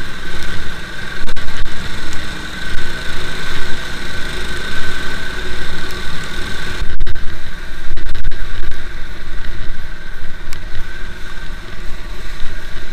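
A quad bike engine drones steadily close by.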